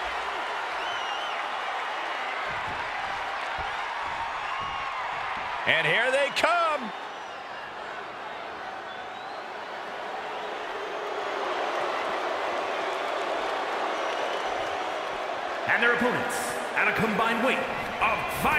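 A large crowd roars and cheers in a huge echoing arena.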